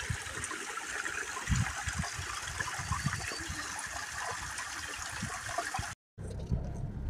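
Water trickles and splashes over rocks.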